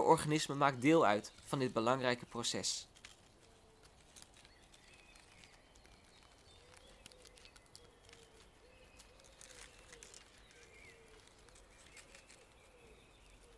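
A beetle crawls over dry leaves with a faint rustle.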